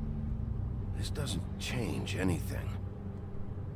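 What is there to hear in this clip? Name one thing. A man speaks in a low, weary voice.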